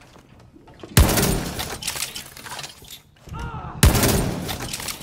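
A shotgun fires two loud blasts.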